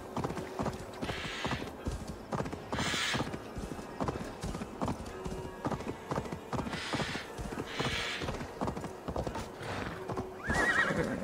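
Hooves thud quickly as a horse gallops over a rocky path.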